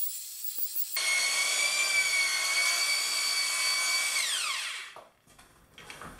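A power drill whirs steadily as it mixes mortar in a bucket, then winds down.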